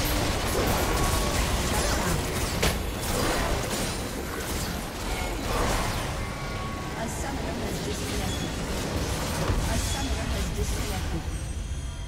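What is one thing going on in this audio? Spell effects and clashing combat sounds from a game crackle and burst.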